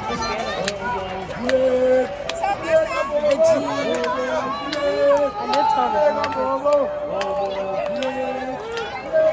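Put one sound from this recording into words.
A large crowd sings together loudly in an open stadium.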